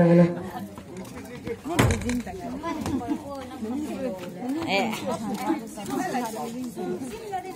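A crowd of women and men talk and murmur together outdoors.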